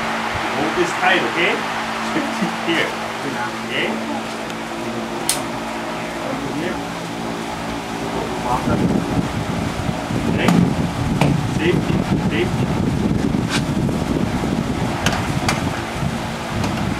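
An electric fan hums steadily.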